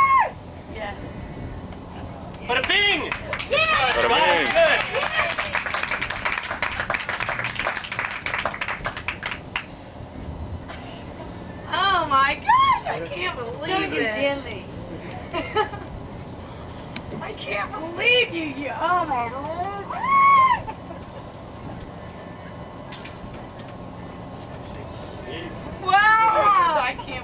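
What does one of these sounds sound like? A group of young people laugh and chatter nearby.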